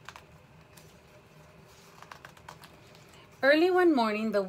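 Paper rustles and crinkles in hands.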